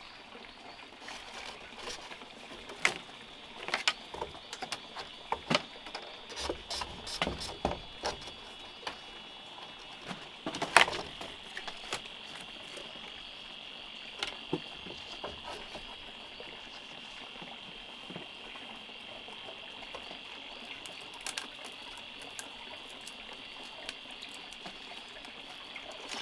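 Bamboo slats knock and clatter against a wooden frame.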